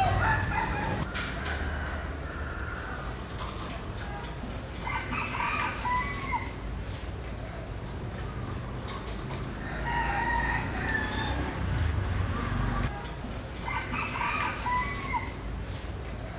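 A caged myna bird whistles and chirps in short repeated calls.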